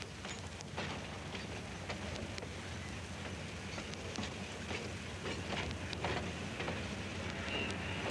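Footsteps tap along a hard platform.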